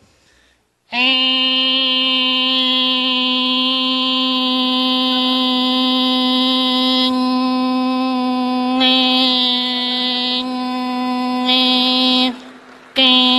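A man holds a long, steady, high-pitched note into a microphone.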